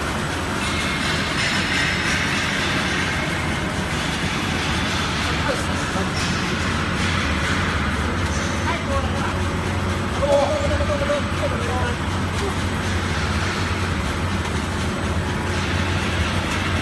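A metal mesh conveyor belt clatters as it runs.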